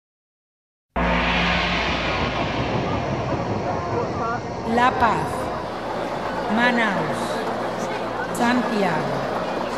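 A roller coaster train rumbles loudly along a track.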